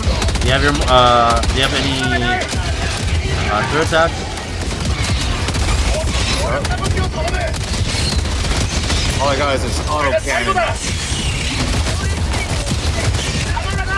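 Explosions boom with rumbling blasts.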